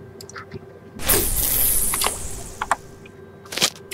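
A fishing line whooshes out in a cast.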